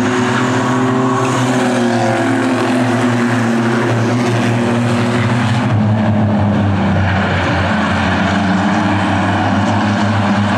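Race car engines roar loudly, rising and falling in pitch as they pass close by.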